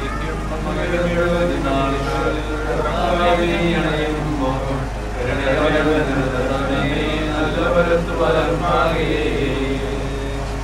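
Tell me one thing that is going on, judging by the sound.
A group of men and women sing together.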